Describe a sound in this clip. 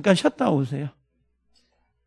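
A middle-aged man speaks through a microphone with animation, in short bursts.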